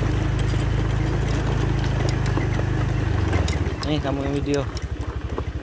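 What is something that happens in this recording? A motorbike engine throbs steadily up close.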